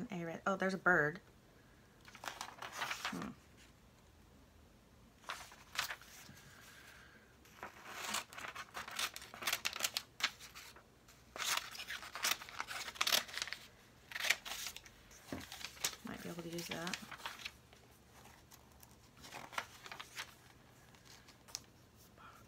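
Glossy magazine pages rustle and flip close by.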